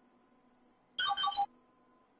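A game menu beeps as the notice is closed.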